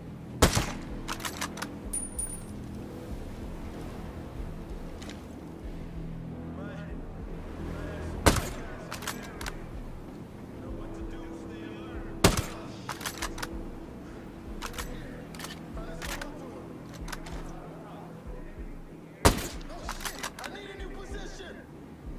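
A rifle bolt clicks and clacks after each shot.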